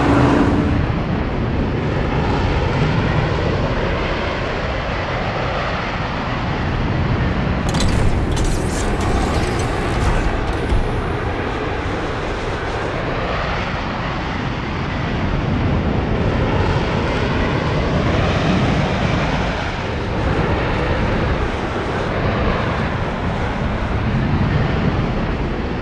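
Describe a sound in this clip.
Jet engines roar as a flying car flies.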